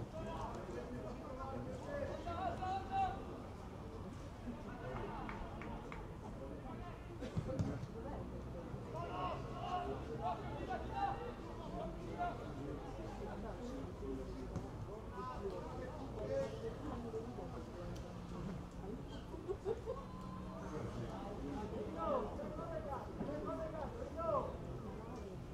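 Players shout to each other across an open pitch outdoors.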